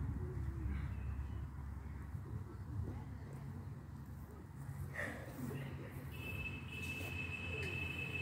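Footsteps shuffle over grass.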